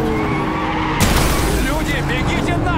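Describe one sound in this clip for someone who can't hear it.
A car crashes into a truck with a loud bang.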